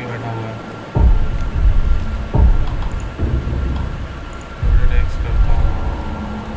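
Heavy menu sounds thud and click.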